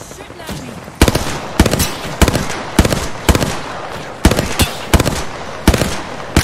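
A rifle fires loud shots in quick bursts.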